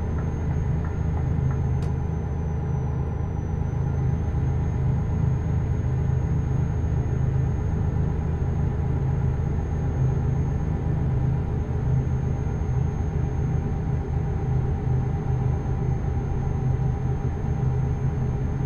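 Tyres rumble on a snowy road.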